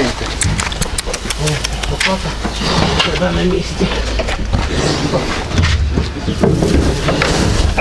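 A pig grunts and snuffles close by.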